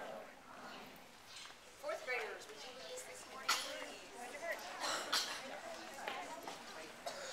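A middle-aged woman speaks calmly into a microphone outdoors.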